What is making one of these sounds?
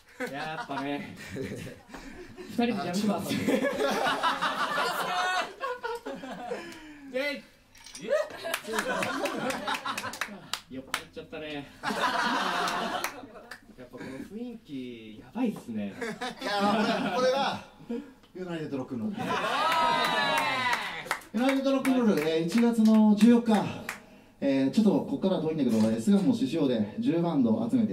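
Another young man speaks and laughs through a microphone.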